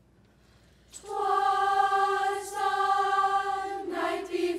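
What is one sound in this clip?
A choir of children sings together, close by.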